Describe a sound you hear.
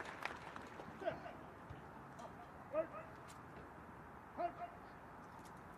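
A man shouts short commands outdoors.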